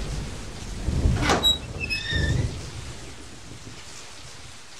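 A heavy metal gate creaks open.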